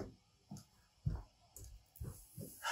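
A young man drops heavily onto a sofa.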